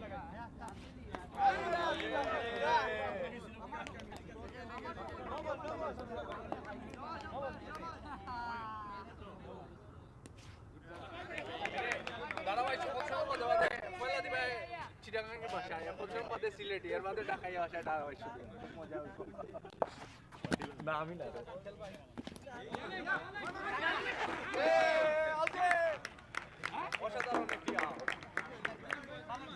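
Hockey sticks clack against a ball on pavement.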